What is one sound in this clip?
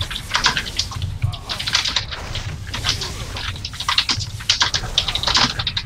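Weapons strike and clang in quick, sharp hits.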